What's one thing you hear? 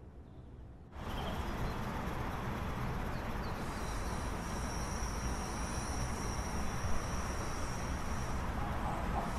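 An electric train rolls past outdoors with a loud rushing rumble.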